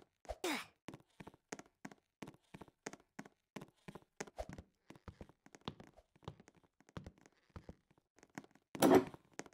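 Footsteps patter quickly in a video game.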